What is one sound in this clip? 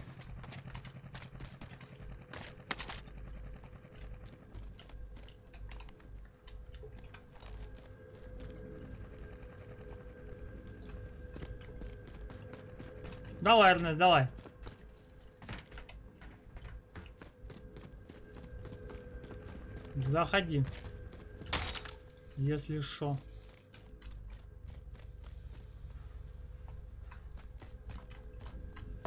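Footsteps patter steadily on a hard floor.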